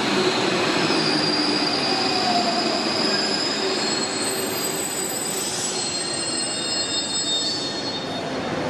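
Train brakes squeal faintly as the train slows.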